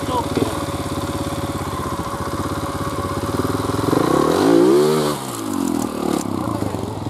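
A motorbike engine revs and sputters close by.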